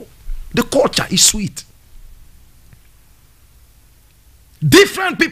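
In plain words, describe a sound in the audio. A man speaks animatedly into a microphone.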